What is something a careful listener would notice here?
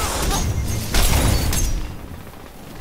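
Heavy blasts and crackling bursts boom loudly.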